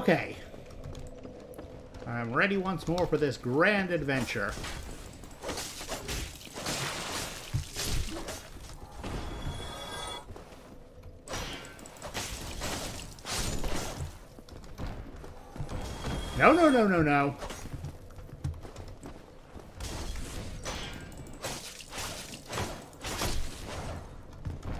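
Armoured footsteps run over stone.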